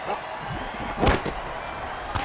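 Armoured players crash together with a heavy thud.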